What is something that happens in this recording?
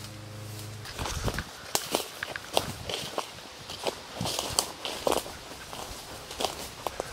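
Footsteps rustle and crunch through leafy undergrowth.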